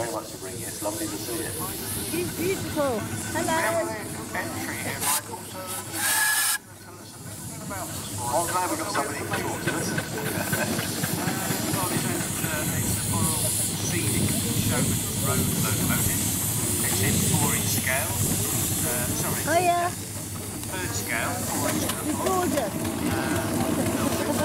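Small steam engines chug and rumble past close by.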